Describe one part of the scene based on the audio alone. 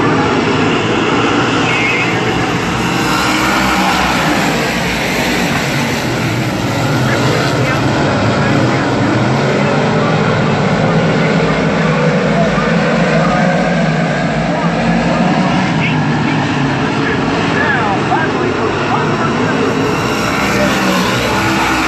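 Many race car engines roar loudly outdoors as the cars race past.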